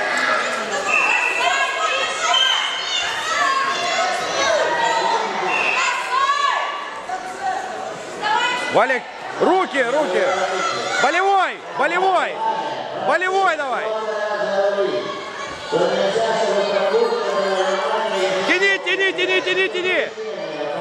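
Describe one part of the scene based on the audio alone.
Spectators, young and adult, shout and cheer loudly in an echoing hall.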